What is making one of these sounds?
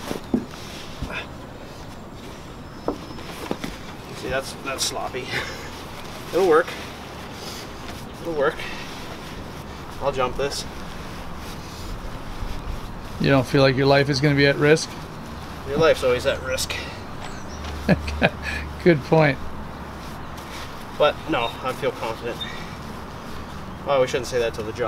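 Nylon fabric rustles as it is stuffed into a bag.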